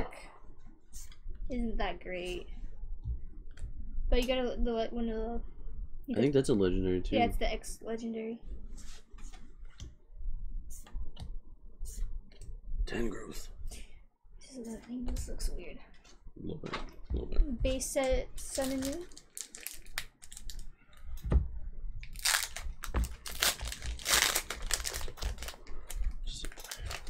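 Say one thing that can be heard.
Trading cards flick and rustle in hands.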